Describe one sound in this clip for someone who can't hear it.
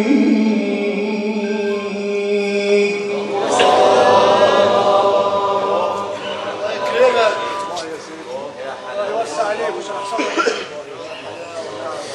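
A young man chants in a long, drawn-out melodic voice through a microphone.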